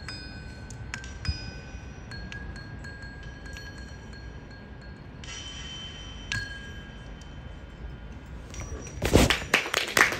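A mallet instrument rings out with slow, sparse notes outdoors.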